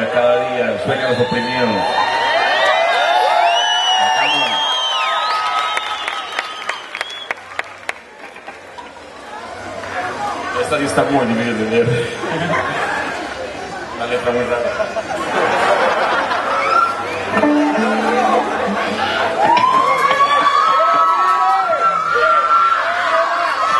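An electric guitar plays loudly through an amplifier.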